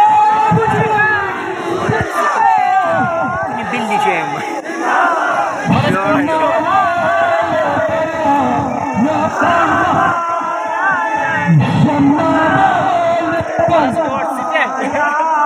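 A crowd of men chants and sings together outdoors.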